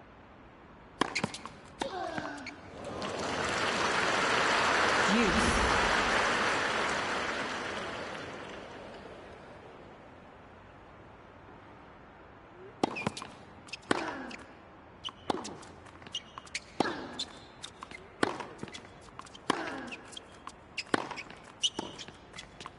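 Tennis players grunt as they hit the ball.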